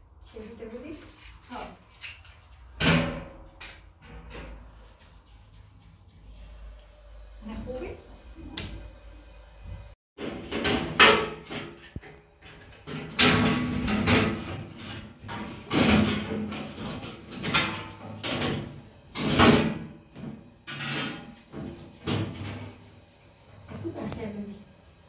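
Hands slap and pat soft dough.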